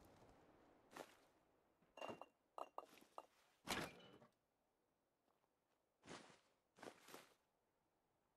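Footsteps knock a few times on a hard floor.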